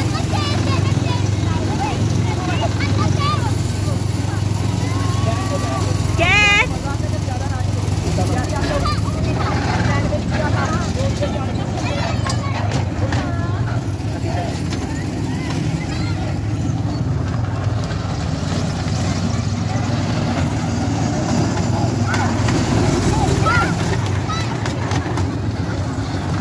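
Children chatter and call out excitedly nearby.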